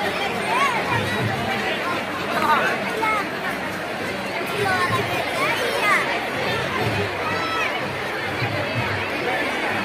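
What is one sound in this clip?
A crowd of men shouts and chatters outdoors.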